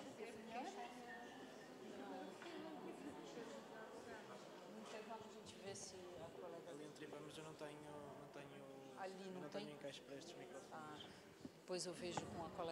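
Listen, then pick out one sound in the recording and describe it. A woman talks calmly at a distance.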